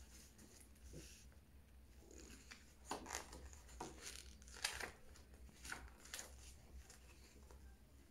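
Book pages rustle and turn.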